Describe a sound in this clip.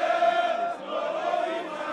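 A man shouts with animation over a crowd.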